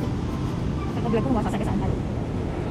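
A young woman speaks briefly and casually close by.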